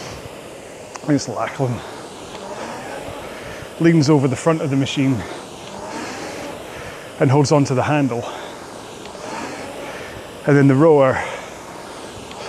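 A man speaks in short bursts close to a microphone, slightly out of breath.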